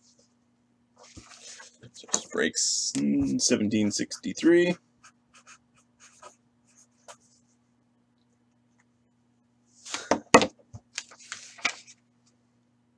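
Paper rustles and crinkles as a sheet is handled.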